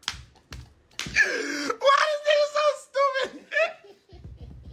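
A young man laughs loudly close to a phone microphone.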